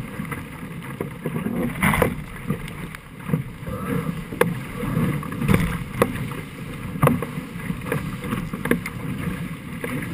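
Water splashes and slaps against a boat's hull.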